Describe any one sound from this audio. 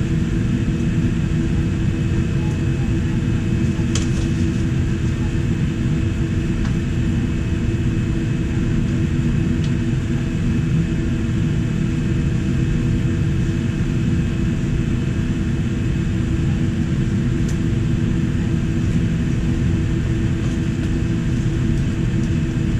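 A jet engine roars steadily outside the cabin, with a deep rumble and humming tones.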